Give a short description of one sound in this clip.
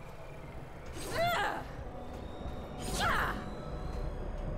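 A blade swishes through the air in quick swings.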